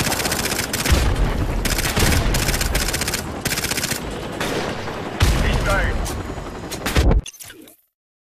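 Gunfire bursts loudly and rapidly.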